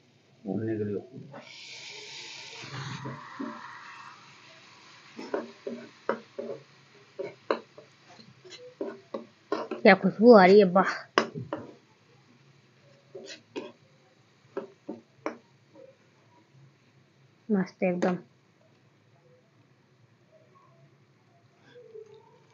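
Water splashes as it is poured into a pan.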